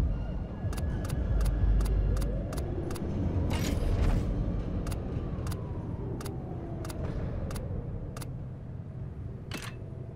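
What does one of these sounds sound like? Short electronic menu clicks tick over and over at a quick, even pace.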